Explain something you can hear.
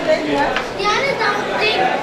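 A young boy speaks loudly.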